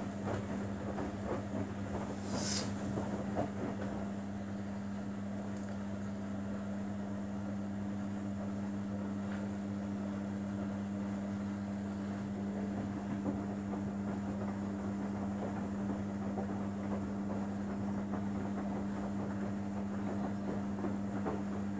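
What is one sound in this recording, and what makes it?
A front-loading washing machine's motor hums as the drum turns.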